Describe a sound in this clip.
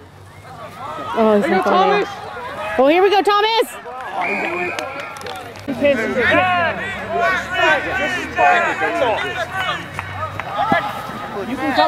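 Young men shout and call out to each other outdoors at a distance.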